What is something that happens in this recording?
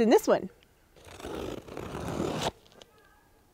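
Cardboard rustles and tears as a box is opened.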